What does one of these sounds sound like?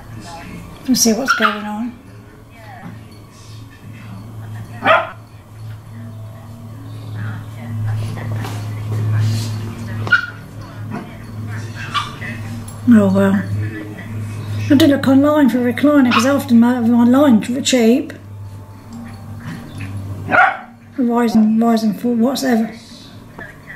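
Dogs bark and yelp excitedly.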